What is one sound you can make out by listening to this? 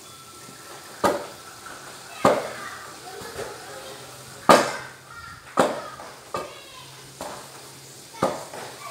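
A wooden pestle thuds into mashed food in a metal pot.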